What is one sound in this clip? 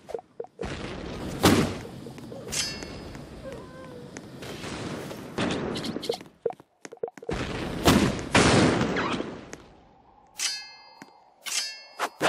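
A video game plays loud, noisy sound effects in short bursts.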